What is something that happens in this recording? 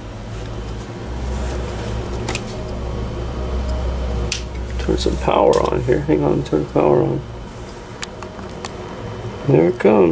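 A small water pump hums steadily.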